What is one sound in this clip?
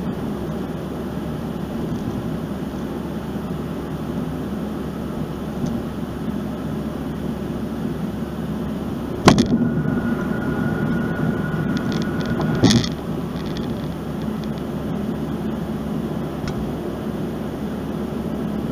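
A car's tyres hum steadily on the road as it drives.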